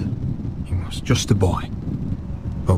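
A man speaks softly and sadly.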